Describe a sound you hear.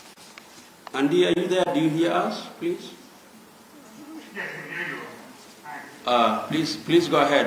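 A man speaks calmly into a microphone through a loudspeaker in an echoing room.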